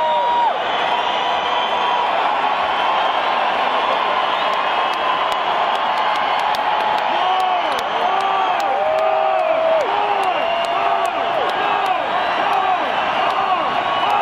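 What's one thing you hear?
A large crowd cheers and roars in a big echoing hall.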